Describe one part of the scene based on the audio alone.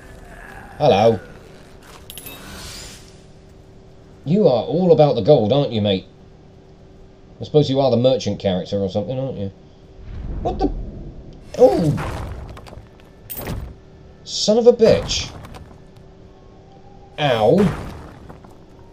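A young man talks with animation, close to a microphone, in short bursts.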